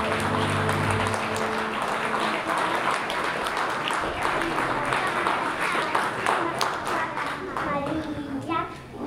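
A small band plays music.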